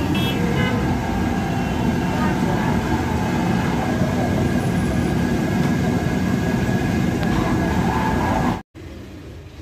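A busy crowd chatters outdoors with steady street noise.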